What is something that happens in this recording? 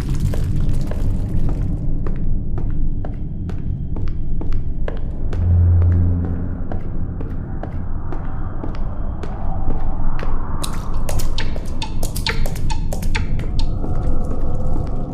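Footsteps thud steadily on creaky wooden floorboards.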